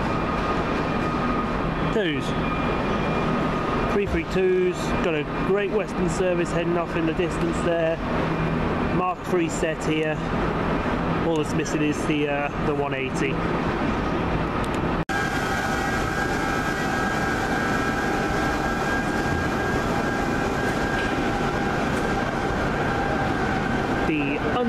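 Train engines idle with a steady hum.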